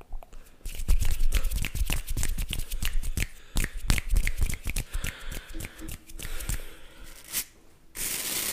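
Fingers tap and snap crisply close to a microphone.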